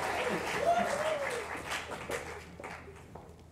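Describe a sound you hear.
A choir of young singers holds a final sung note.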